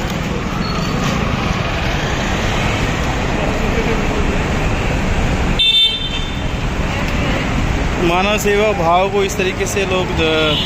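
Several men chatter in the background outdoors.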